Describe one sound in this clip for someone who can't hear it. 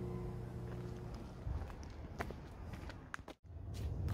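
Footsteps crunch on a leafy path.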